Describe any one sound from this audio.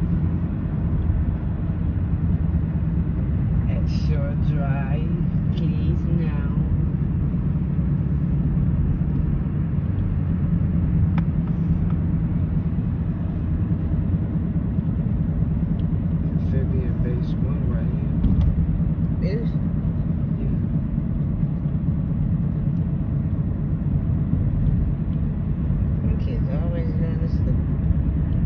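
A car engine rumbles steadily as tyres roll over the road.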